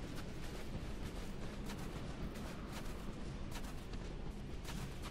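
Wind blows steadily through a snowstorm.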